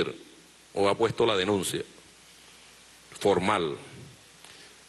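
A middle-aged man speaks emphatically into a microphone.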